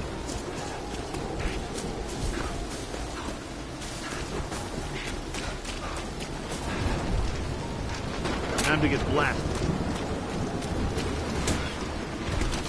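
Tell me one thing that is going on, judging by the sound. Footsteps crunch through grass and leaves.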